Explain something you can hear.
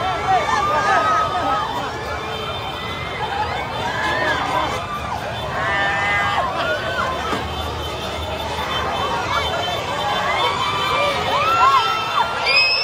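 A large crowd outdoors cheers and shouts excitedly.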